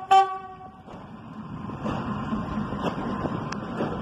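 A train rumbles past close by, wheels clattering on the rails.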